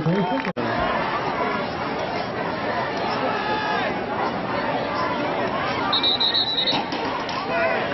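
A crowd of spectators cheers and shouts from the stands outdoors.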